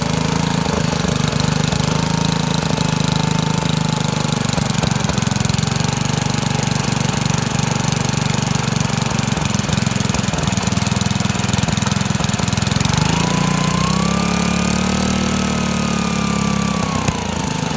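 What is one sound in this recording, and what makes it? A small engine runs with a loud, steady chugging rumble.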